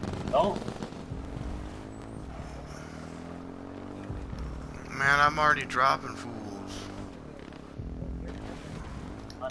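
A quad bike engine hums steadily as it drives over rough ground.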